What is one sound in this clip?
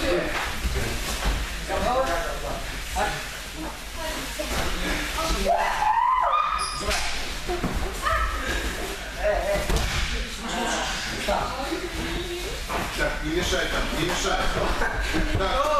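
Bodies thud onto a mat as wrestlers throw each other.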